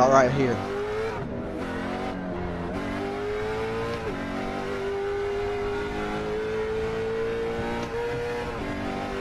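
A race car engine roars steadily, its pitch dipping and rising with gear shifts.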